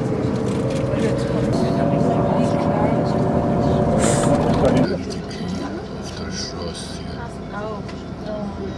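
A bus engine hums steadily from inside the vehicle.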